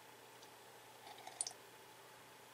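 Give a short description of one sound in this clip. A man sips a drink from a mug close by.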